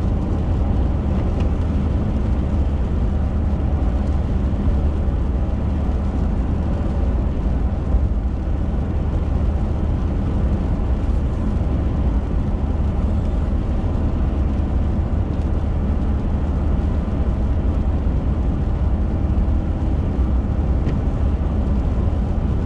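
Tyres hiss on wet pavement.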